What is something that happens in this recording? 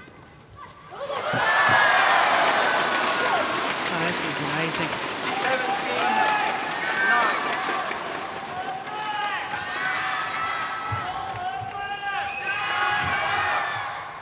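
A large crowd cheers and shouts loudly in an echoing hall.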